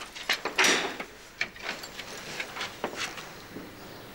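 A wooden door is opened.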